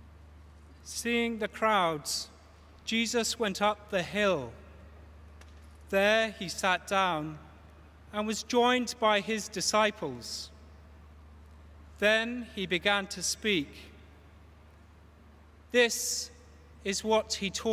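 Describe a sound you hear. A man chants slowly into a microphone in a large echoing hall.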